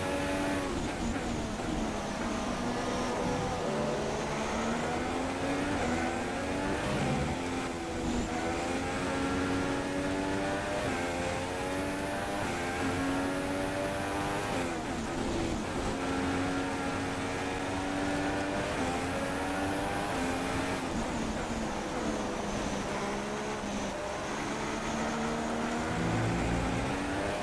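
A racing car engine roars, rising and falling in pitch as the car speeds up and brakes.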